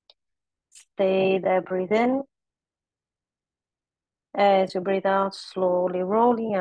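A woman speaks calmly and steadily, heard through an online call.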